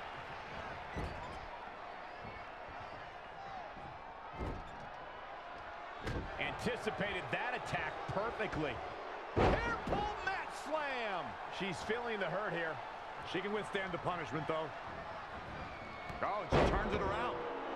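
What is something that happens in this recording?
Bodies slam onto a ring mat with heavy thuds.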